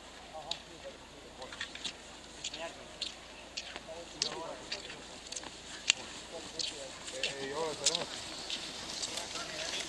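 Skis swish over packed snow.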